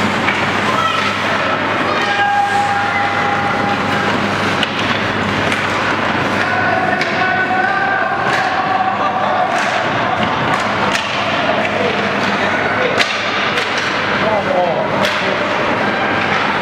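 Ice skates scrape and carve on ice.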